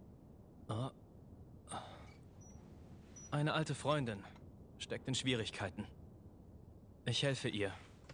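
A young man speaks calmly in a low voice, close by.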